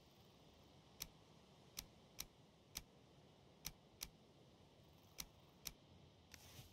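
Short, soft clicks sound as items in a game menu are picked.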